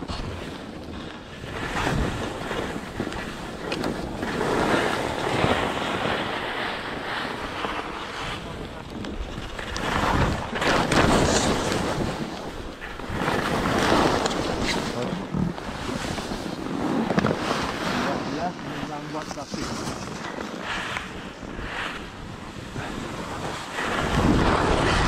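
Skis hiss and scrape over snow.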